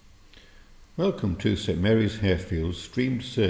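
An elderly man speaks calmly close by, in a large echoing hall.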